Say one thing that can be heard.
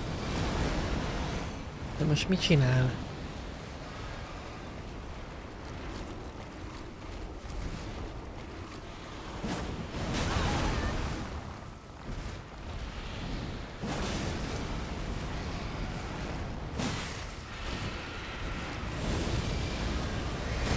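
Blades clash and slash with sharp impacts.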